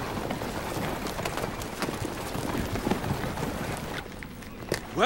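Horse hooves clop on the ground.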